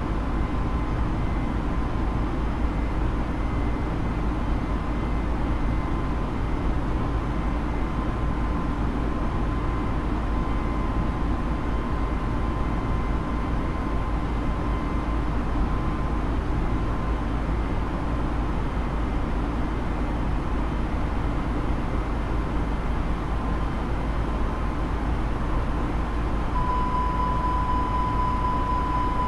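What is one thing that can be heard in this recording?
A jet airliner's engines roar steadily with loud wind rush inside the cockpit.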